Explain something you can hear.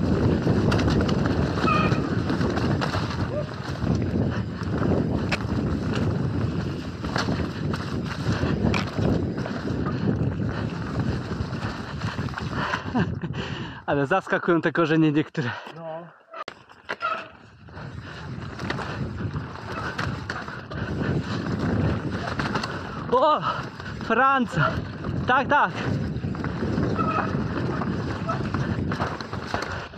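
Bicycle tyres roll and skid over a bumpy dirt trail.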